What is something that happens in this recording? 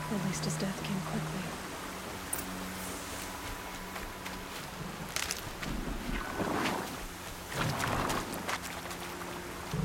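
Water rushes steadily in a nearby stream.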